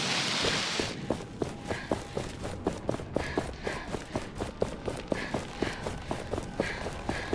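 Quick footsteps slap on stone steps.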